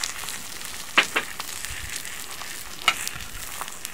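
A plate clinks against a metal utensil.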